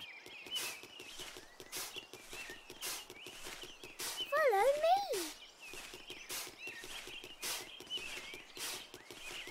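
A spade digs into soil with repeated soft thuds.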